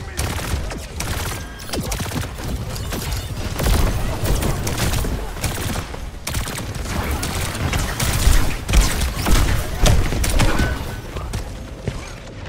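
Explosions thump loudly.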